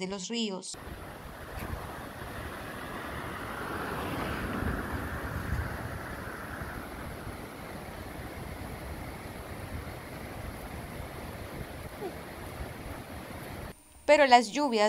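Muddy floodwater rushes and roars along a channel.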